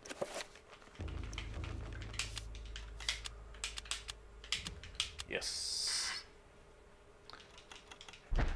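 Short menu clicks and chimes sound in quick succession.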